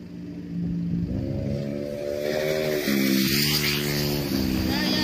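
A motorcycle engine drones close by and grows louder.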